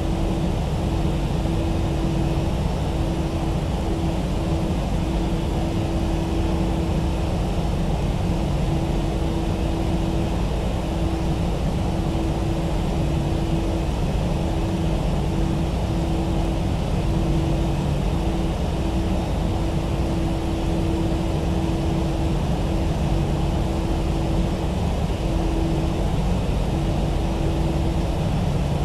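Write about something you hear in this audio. Tyres rumble over a runway.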